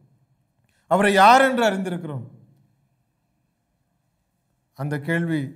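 A middle-aged man sings into a microphone close by.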